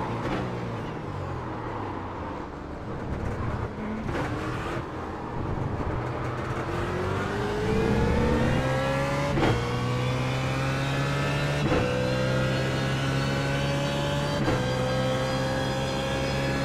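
A racing car engine roars, its pitch rising as it accelerates and dropping sharply at each gear change.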